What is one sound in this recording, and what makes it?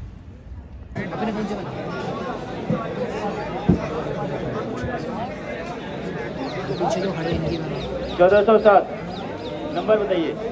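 A crowd chatters and cheers outdoors.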